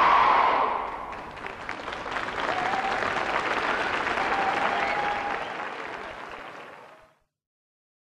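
A large crowd claps and applauds in a large echoing hall.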